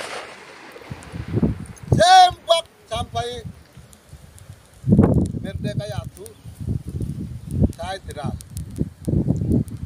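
Wind rumbles against the microphone outdoors.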